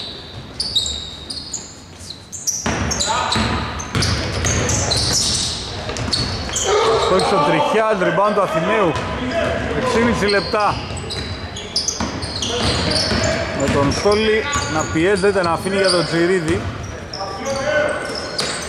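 Sneakers squeak sharply on a hard court, echoing in a large hall.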